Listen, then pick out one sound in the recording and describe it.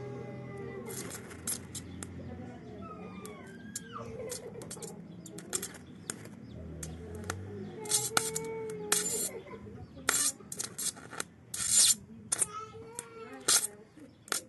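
Electric sparks crackle and sizzle in sharp bursts.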